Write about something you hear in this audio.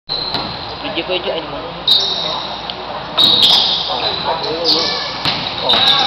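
Young men and spectators call out in an echoing hall.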